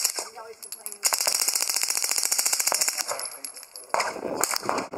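A suppressed submachine gun fires a rapid burst.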